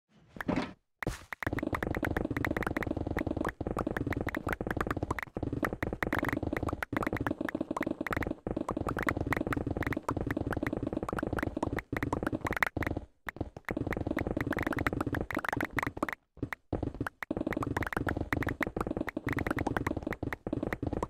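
Stone blocks crack and break in rapid succession in a game.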